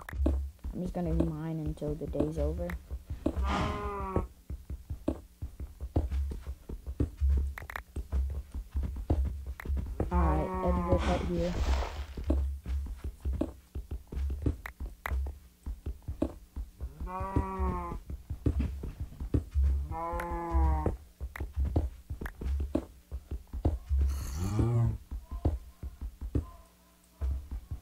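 A pickaxe chips at stone with quick, repeated knocks.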